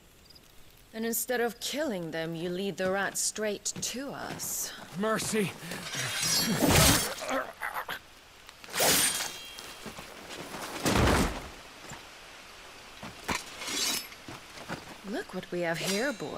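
A woman speaks coldly and scornfully, close by.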